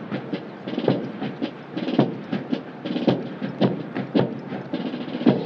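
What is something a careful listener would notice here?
Boots stamp on pavement in steady marching rhythm outdoors.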